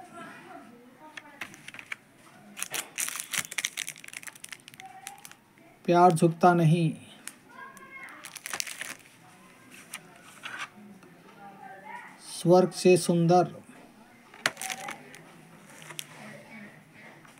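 Plastic cases click and rattle as they are handled.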